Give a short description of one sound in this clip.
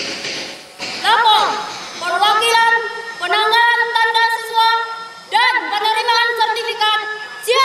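A young woman shouts commands outdoors.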